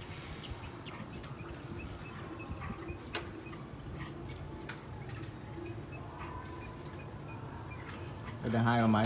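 A caged bird chirps softly now and then.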